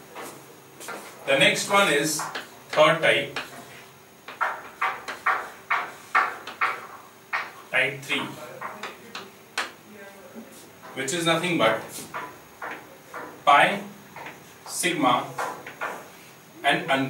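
A man speaks calmly and clearly, as if explaining, close by.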